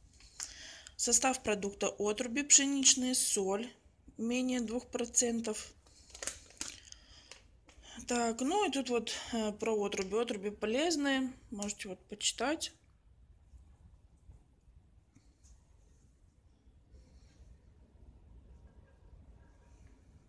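A plastic packet crinkles softly in a hand.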